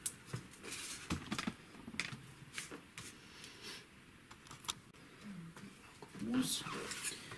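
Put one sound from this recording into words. Paper rustles and taps softly as it is handled close by.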